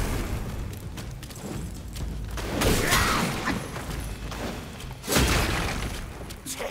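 Fire bursts with a loud whoosh.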